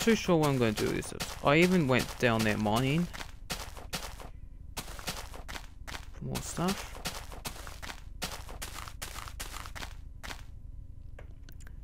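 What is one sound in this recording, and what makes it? Footsteps thud softly on grass.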